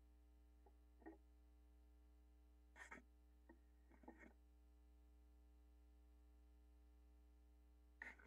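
A vinyl record rustles and taps as it is handled and lifted off a turntable.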